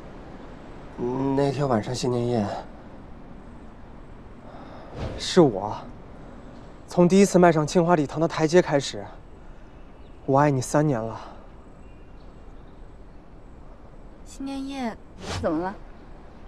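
A young man speaks emotionally, close by.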